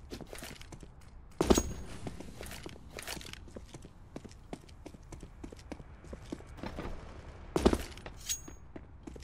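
Game footsteps patter while a character runs on concrete.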